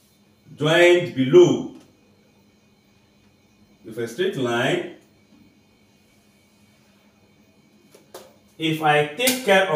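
A man speaks clearly and steadily, as if teaching, close to a microphone.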